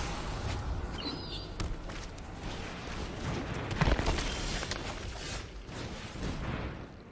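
Game music plays throughout.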